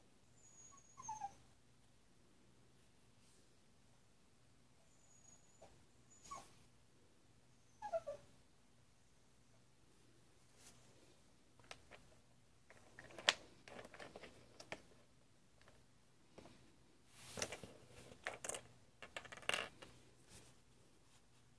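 A felt-tip pen squeaks and scratches on paper in short strokes.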